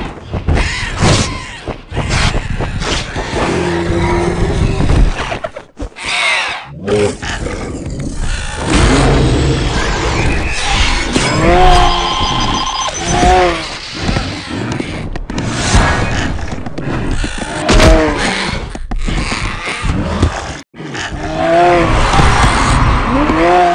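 Heavy blows and crashes strike during a fight.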